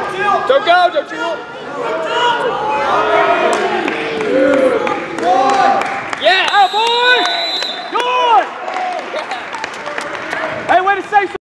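A man shouts instructions loudly from close by.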